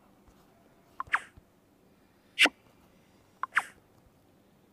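Short electronic chimes and clicks sound as game menus open.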